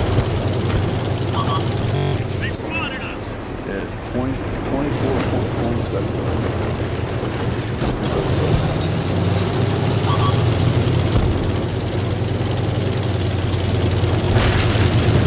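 Tank tracks clank and grind over dirt.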